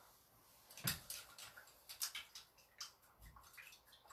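A brush swishes and clinks in a jar of water.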